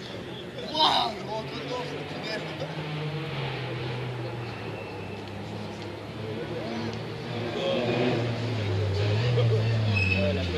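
A crowd of spectators chatters outdoors at a distance.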